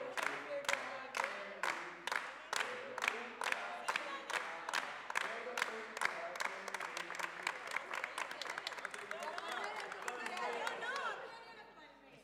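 A crowd claps in a steady, quick rhythm that breaks into loose applause and then fades.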